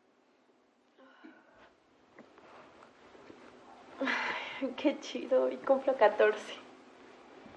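A young woman moans and giggles sleepily up close.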